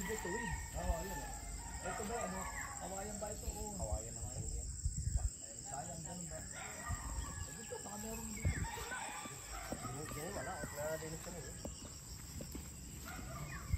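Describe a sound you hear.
Footsteps swish through tall grass.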